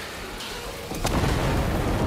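Gunfire booms in heavy bursts.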